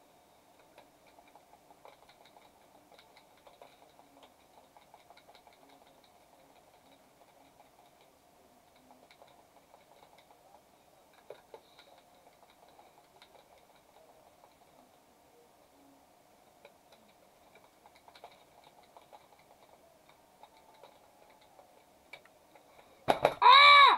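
Faint game combat sounds of gunfire and clashing blades crackle quietly.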